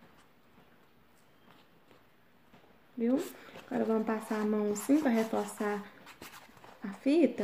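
Paper crinkles and rustles as it is folded.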